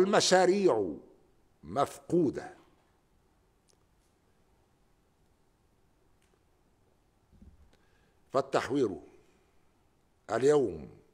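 An elderly man speaks slowly and formally into a microphone, with long pauses.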